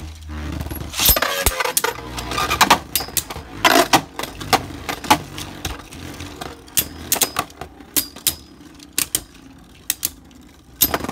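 Spinning tops clash together with sharp clacks.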